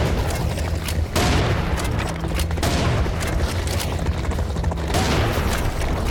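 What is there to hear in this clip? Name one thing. Shotgun shells click as they are loaded one by one.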